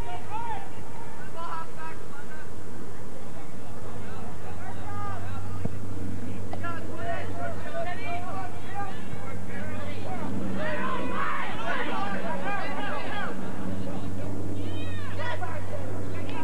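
Young players shout and call to each other outdoors.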